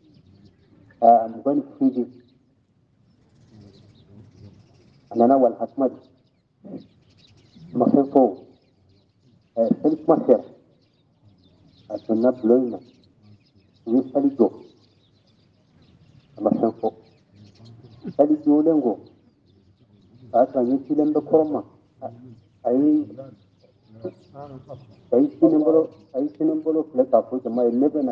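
An elderly man speaks in short, measured phrases with pauses between them.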